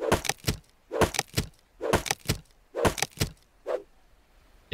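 A hatchet chops into wood with sharp knocks.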